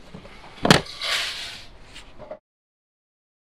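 Paper slips rustle as a hand rummages through them.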